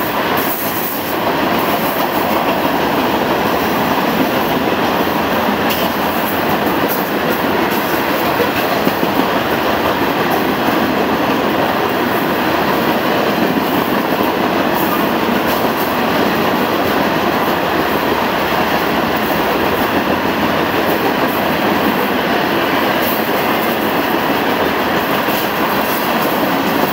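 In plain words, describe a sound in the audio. A long freight train rolls by at moderate speed, its wheels clattering and rumbling on the rails.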